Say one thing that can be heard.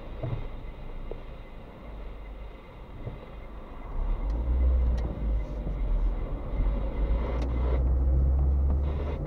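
Road noise rumbles inside a moving car as its tyres roll over asphalt.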